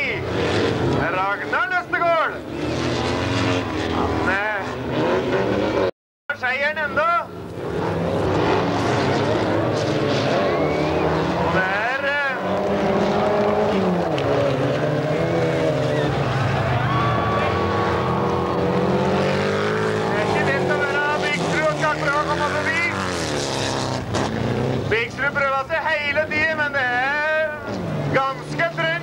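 Race car engines roar and rev loudly.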